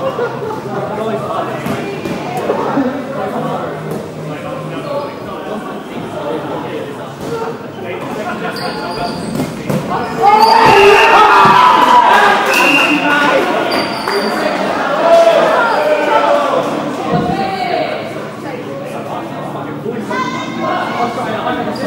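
Children's voices shout and call out across a large echoing hall.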